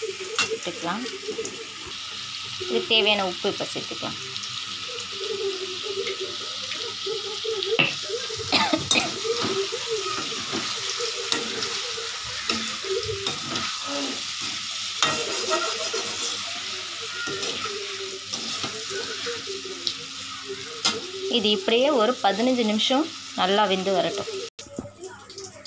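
Food sizzles and fries in a hot pan.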